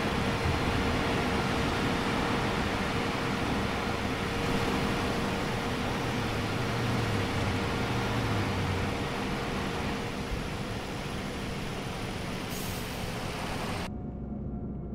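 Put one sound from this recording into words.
A bus engine drones loudly and steadily.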